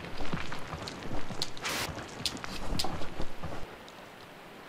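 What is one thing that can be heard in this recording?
Footsteps crunch on rough stone.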